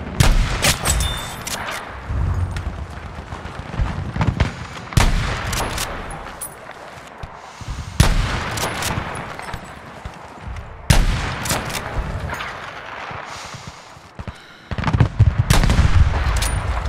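A rifle fires loud single shots that echo across open ground.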